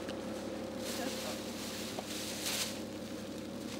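A foil blanket crackles and rustles.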